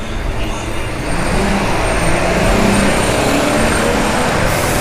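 A large truck's engine rumbles close by.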